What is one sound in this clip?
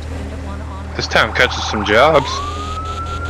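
A fire engine horn blares in short bursts.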